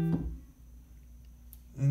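A piano plays a few notes.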